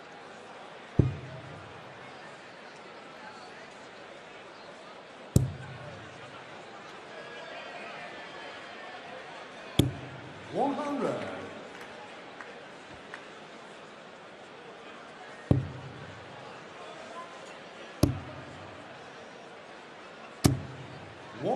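Darts thud sharply into a board, one at a time.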